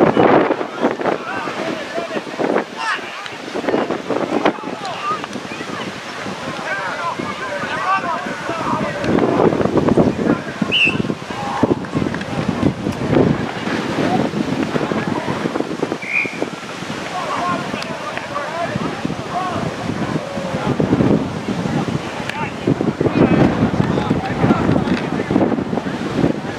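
A crowd of spectators talks and cheers outdoors.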